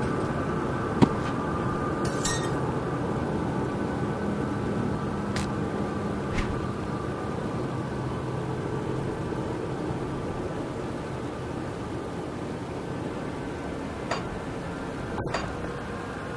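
Soft clicks sound now and then.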